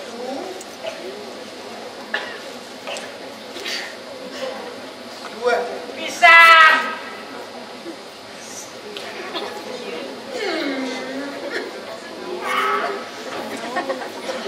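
Men speak and call out with animation.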